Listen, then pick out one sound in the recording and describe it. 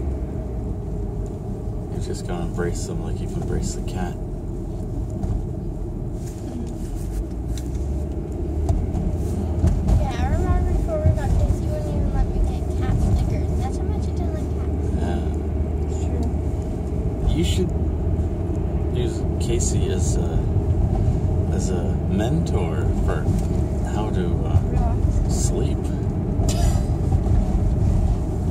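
A car engine hums with a steady low rumble as the car drives.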